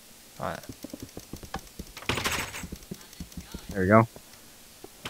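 Repeated light knocks of a block being hit and broken.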